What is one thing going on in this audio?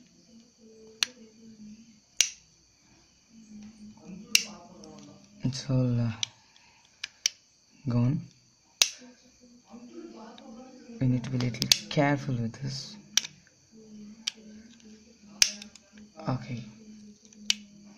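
A small plastic tool scrapes and clicks against hard plastic.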